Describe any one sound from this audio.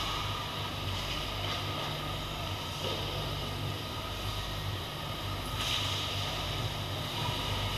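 Ice skates scrape across an ice rink.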